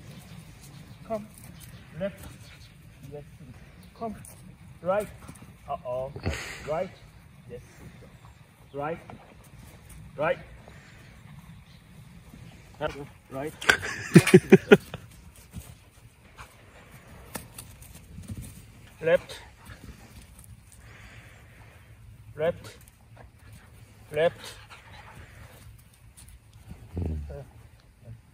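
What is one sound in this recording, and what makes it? A man calls out short, sharp commands to a dog.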